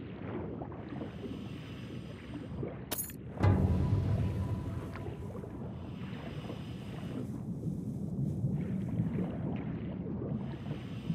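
Water bubbles and rumbles steadily around a diver swimming underwater.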